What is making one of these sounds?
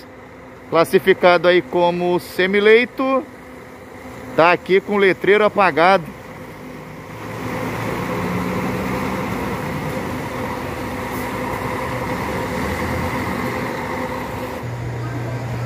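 A bus engine rumbles as the bus pulls away.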